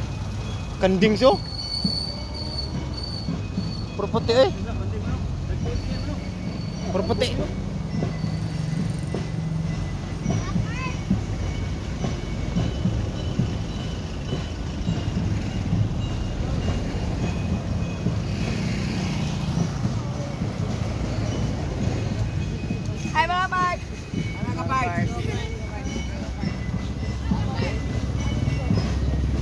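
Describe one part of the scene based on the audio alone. A vehicle engine rumbles steadily nearby.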